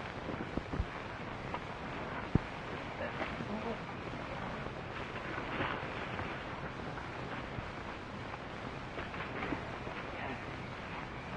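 Horses' hooves shuffle and clop on rocky ground.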